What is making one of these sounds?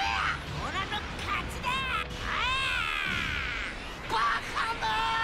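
Video game energy blasts whoosh and ring with sweeping tones.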